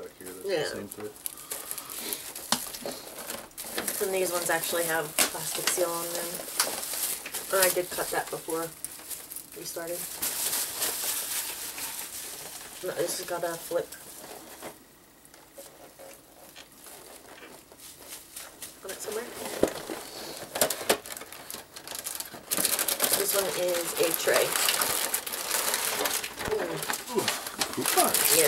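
A plastic bag crinkles and rustles as a box is opened.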